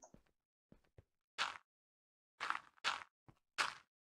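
A block of earth is set down with a soft thud.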